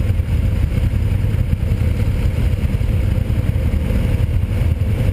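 Motorcycle engines idle and rumble nearby.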